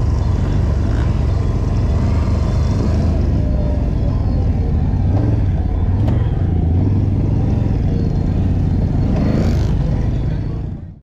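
A quad bike engine rumbles and revs up close.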